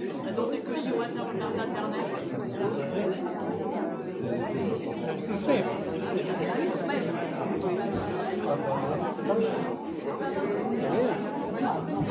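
A crowd of men and women chatter at once in a large echoing hall.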